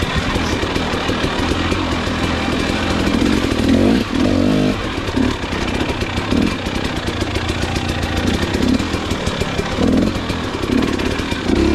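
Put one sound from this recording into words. Tyres crunch and thump over dirt, roots and twigs.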